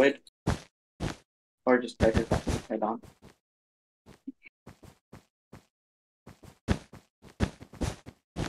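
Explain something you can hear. Blocks are placed one after another with short, soft thuds.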